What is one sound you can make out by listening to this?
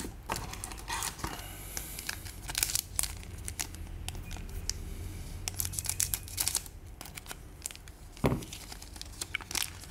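A foil wrapper crinkles between fingers.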